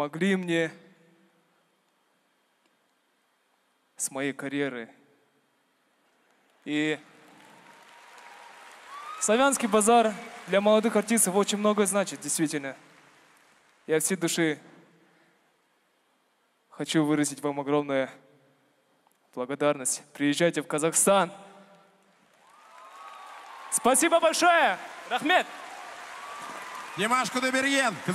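A young man speaks with emotion into a microphone, heard over loudspeakers in a large hall.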